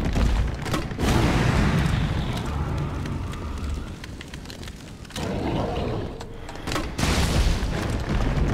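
A grenade explodes with a heavy boom.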